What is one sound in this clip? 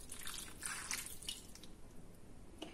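Liquid pours and splashes into a roasting pan.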